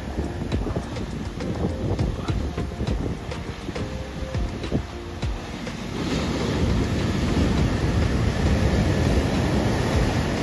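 Waves crash loudly against rocks.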